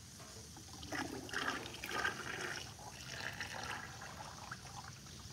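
Liquid pours from a jar into a jug.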